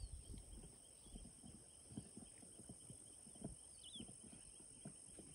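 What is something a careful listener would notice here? Grass rustles softly in a light breeze.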